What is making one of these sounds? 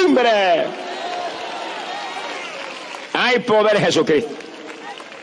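A large crowd shouts and cheers together in loud bursts.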